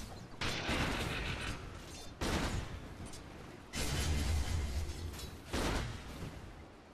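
Game spell effects and weapon strikes burst and crash in loud bursts.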